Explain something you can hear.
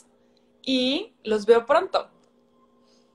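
A young woman speaks with animation close to the microphone.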